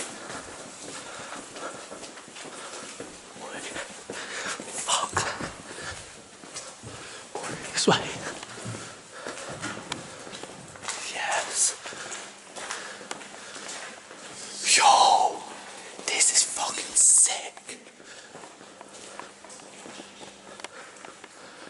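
Footsteps walk across a hard floor in a large, echoing empty space.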